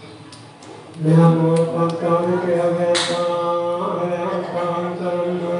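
Men chant together in a low, steady drone.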